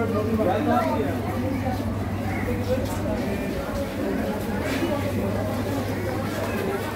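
A crowd of men and women murmurs and chatters at a distance.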